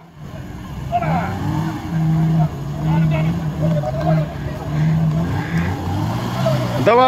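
A car engine revs and strains in thick mud.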